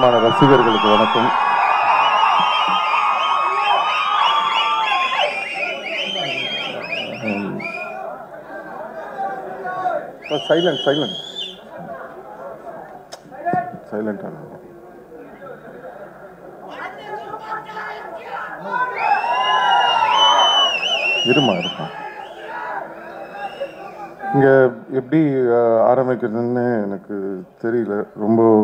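A young man speaks into a microphone over loudspeakers, with animation, in a large echoing hall.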